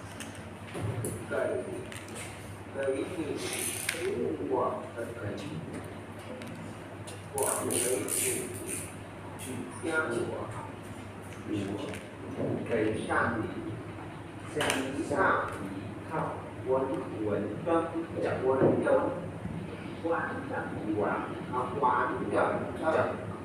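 A young woman talks calmly, close to the microphone.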